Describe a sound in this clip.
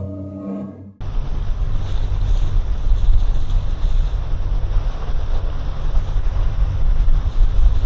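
Strong wind buffets loudly outdoors.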